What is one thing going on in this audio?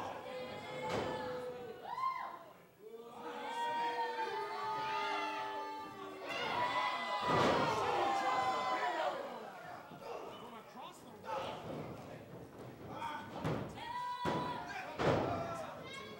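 A body slams onto a wrestling ring mat with a loud thud.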